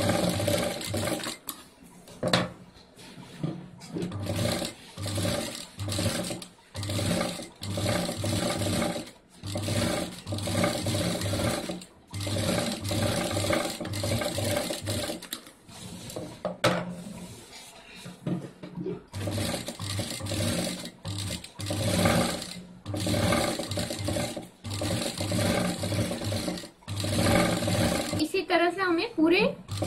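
A sewing machine whirs in short bursts, stitching fabric.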